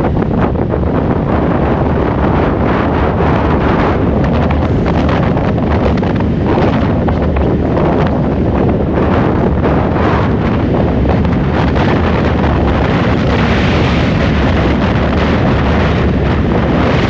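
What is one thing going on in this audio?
Wind buffets loudly past a moving car.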